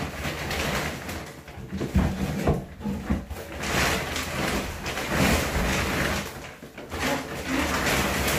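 Plastic bags rustle and crinkle as they are lifted and stacked.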